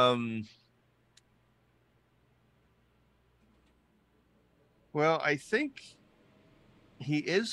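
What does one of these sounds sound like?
A man speaks with animation close to a microphone over an online call.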